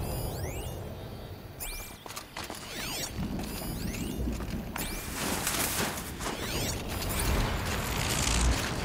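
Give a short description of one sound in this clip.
Wind howls through a snowstorm.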